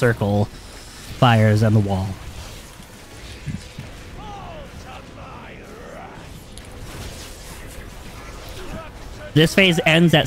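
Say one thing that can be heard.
Magic spells crackle and whoosh in a battle.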